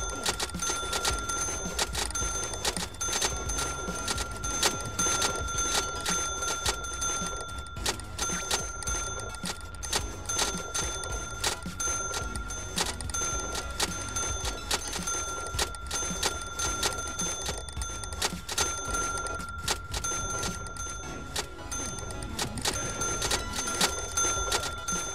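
A checkout scanner beeps again and again.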